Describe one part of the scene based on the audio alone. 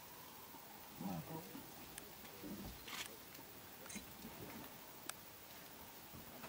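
Two Cape buffalo bulls clash horns, with dull knocks.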